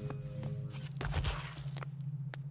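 A body thuds onto a hard floor.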